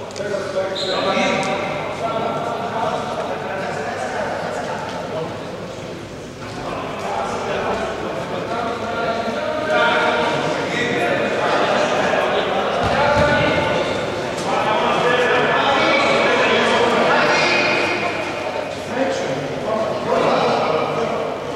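Men shout and call out across a large echoing hall.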